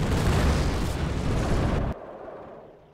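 A heavy explosion rumbles loudly.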